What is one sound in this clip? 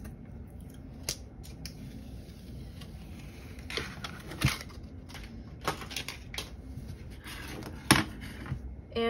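Thin plastic sheets tap and clatter on a hard surface.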